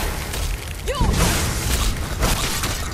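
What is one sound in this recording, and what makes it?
A fire blast roars.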